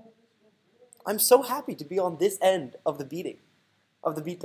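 A loud game fanfare sounds as a new turn begins.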